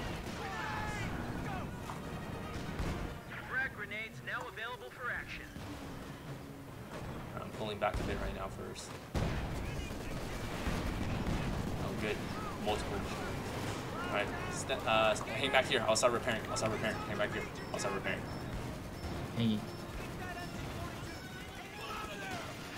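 Shells explode with deep booms.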